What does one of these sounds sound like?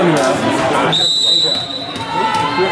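A referee's whistle blows a short shrill blast.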